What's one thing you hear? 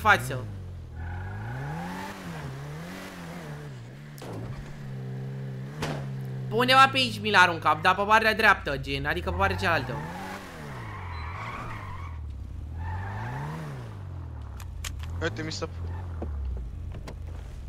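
A car engine revs up and down, rising and falling in pitch.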